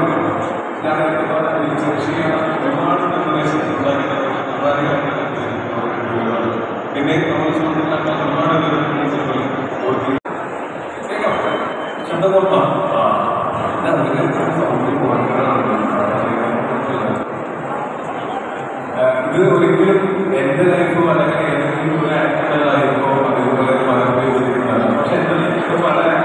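A man speaks with animation into a microphone through loud speakers in an echoing space.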